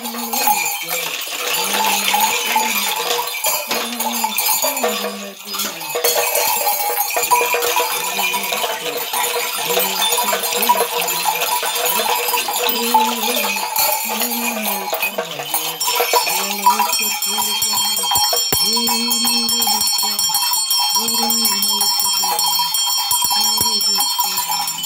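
A man sings in a low, chanting voice close by.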